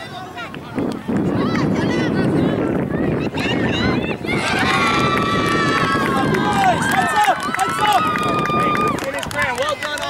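A crowd of spectators cheers and screams loudly.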